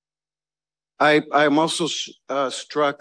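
A woman speaks calmly over an online call through a loudspeaker.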